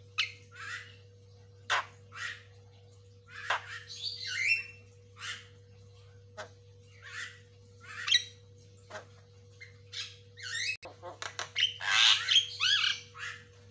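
A myna bird calls close by with chirps, whistles and clicks.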